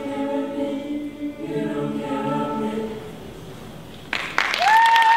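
A choir of young men and women sings together in a large hall.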